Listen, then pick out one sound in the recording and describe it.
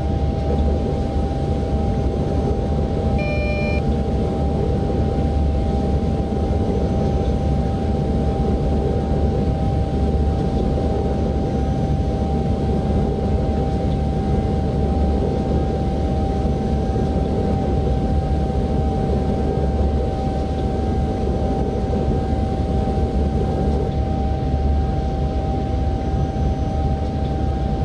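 An electric motor hums with a steady whine.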